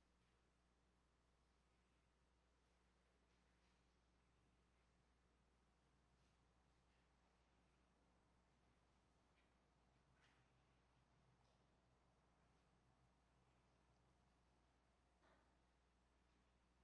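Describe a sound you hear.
A middle-aged man speaks calmly through a microphone in an echoing hall.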